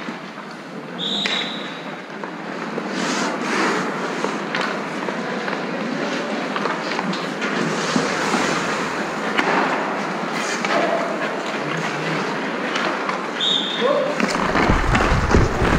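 Skate blades scrape and hiss across ice.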